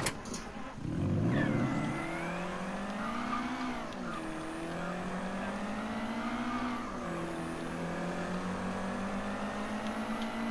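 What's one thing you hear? A car engine starts and revs as the car drives off.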